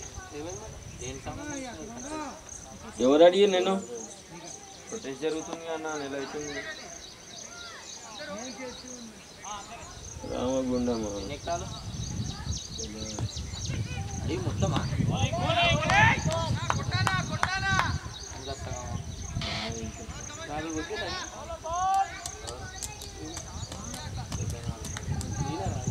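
Men call out and shout across an open field.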